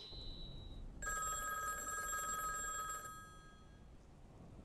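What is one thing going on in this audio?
An old telephone rings with a bright bell.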